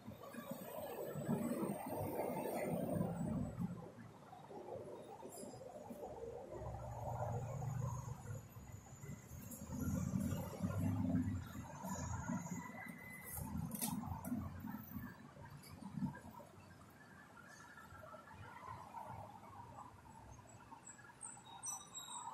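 A bus engine rumbles and hums from inside as the bus drives.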